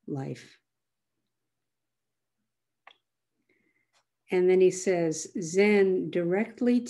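An elderly woman speaks calmly and close to a microphone, pausing between phrases.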